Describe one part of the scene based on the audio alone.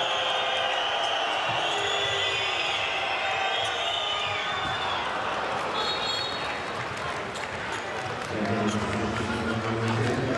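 A large crowd cheers and chants in an echoing arena.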